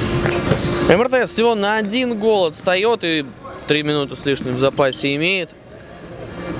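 Shoes squeak sharply on a hard indoor court.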